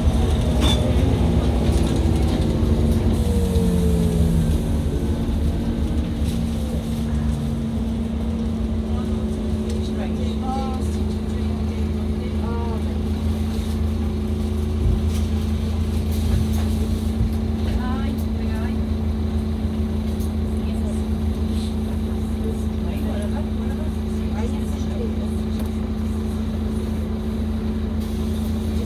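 A bus rattles and creaks as it drives along.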